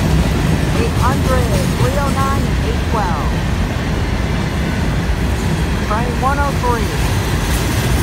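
Train wheels briefly squeal on the rails.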